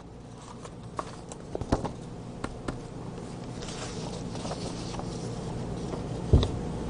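Sheets of paper rustle and tap under a hand.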